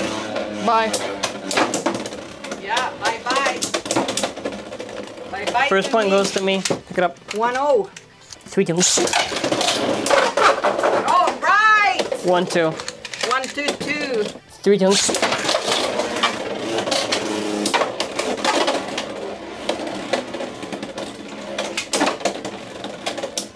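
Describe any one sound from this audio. Spinning tops whir and clash against each other with sharp metallic clicks.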